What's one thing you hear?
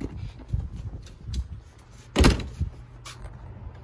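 A cardboard box thumps down on wooden decking.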